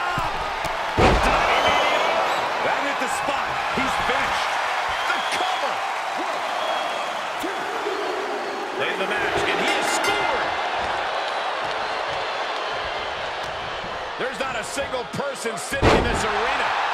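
Heavy thuds of bodies slam onto a wrestling mat.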